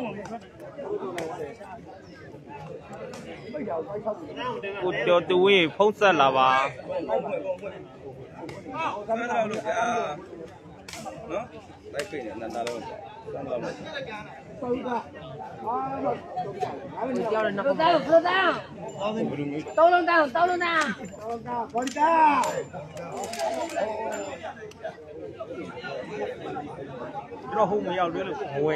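A crowd of young men chatter, shout and cheer outdoors.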